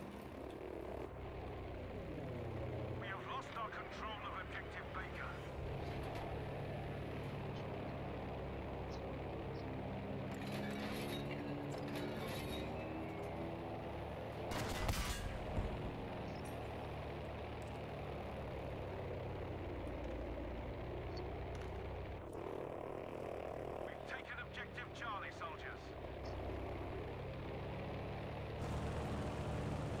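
Machine guns fire in short rattling bursts.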